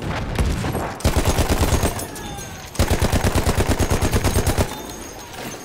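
A machine gun fires rapid bursts at close range.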